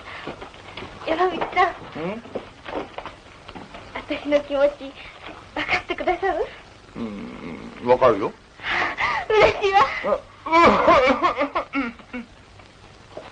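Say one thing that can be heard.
A middle-aged man talks with animation.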